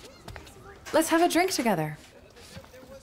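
A young woman speaks cheerfully nearby.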